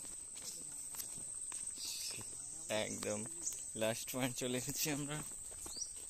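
Footsteps scuff on a concrete path.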